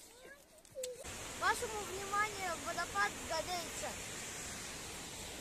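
A young boy speaks with animation close by.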